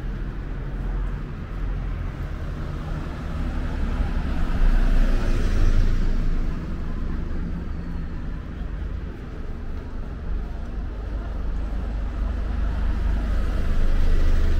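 Traffic rumbles steadily along a nearby road.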